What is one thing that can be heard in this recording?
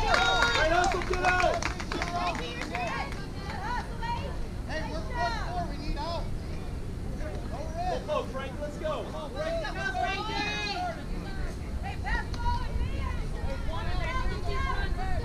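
Young girls call out and cheer from across an open field.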